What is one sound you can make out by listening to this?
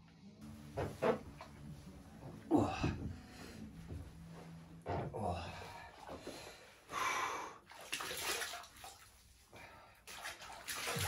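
Bath water splashes and sloshes close by.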